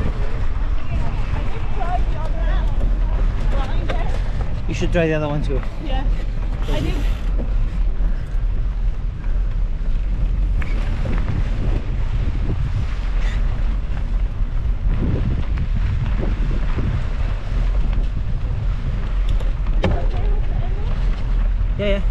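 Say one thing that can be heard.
Bicycle tyres crunch and rattle over a dirt track.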